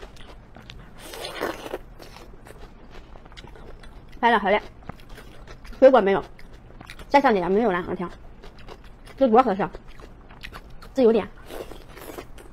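A young woman slurps and chews food close to a microphone.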